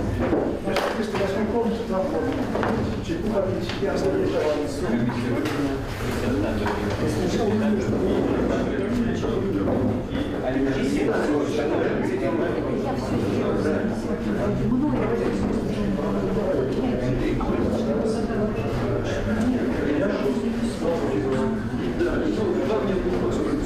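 Many men and women chatter together at once.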